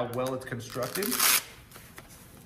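Velcro straps rip open on a vest.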